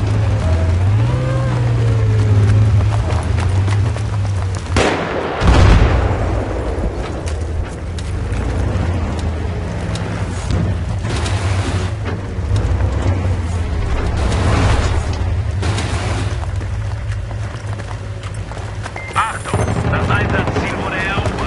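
Gunshots crack and echo between buildings.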